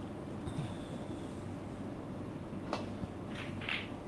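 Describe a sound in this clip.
A cue taps a snooker ball with a soft click.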